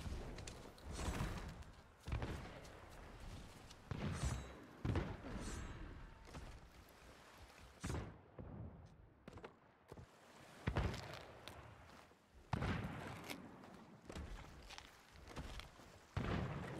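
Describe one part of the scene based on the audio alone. Footsteps thud on wooden planks.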